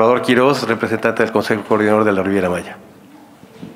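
A man speaks loudly through a microphone.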